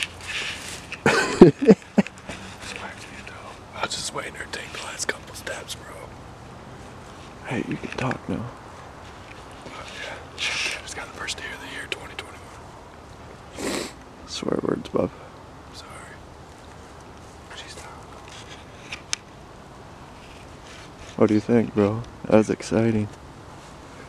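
A man speaks quietly and close by, in short bursts.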